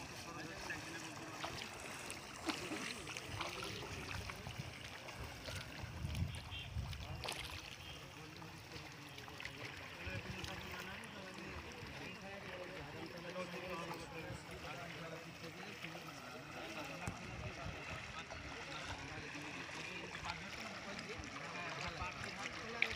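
People wade through shallow water, splashing.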